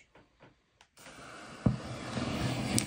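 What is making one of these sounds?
Flames whoosh up and roar.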